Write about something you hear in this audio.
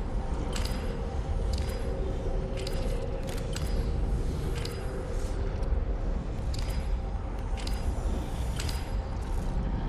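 A game countdown ticks sharply about once a second.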